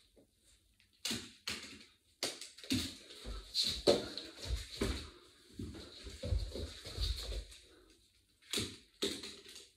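Bare feet thump and shuffle on a hard floor.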